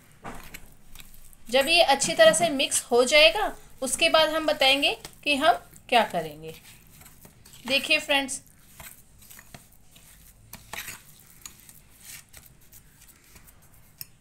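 A spoon stirs and scrapes thick paste in a glass bowl.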